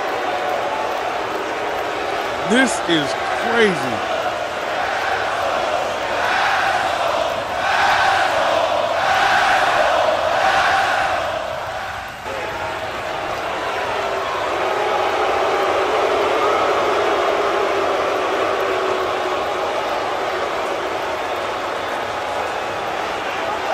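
A large crowd roars and chants in an echoing arena.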